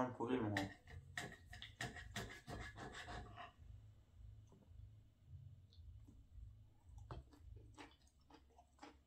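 Cutlery clinks and scrapes on a plastic dish.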